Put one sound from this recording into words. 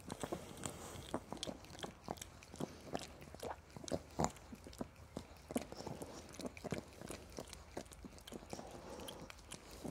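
A man makes kissing and smacking sounds close up.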